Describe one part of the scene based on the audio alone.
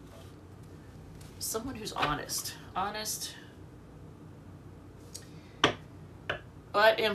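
Cards shuffle and tap on a wooden table.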